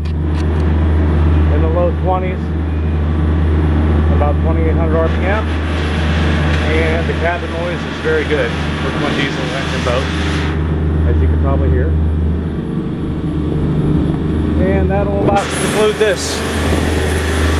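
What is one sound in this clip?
A middle-aged man talks close to the microphone.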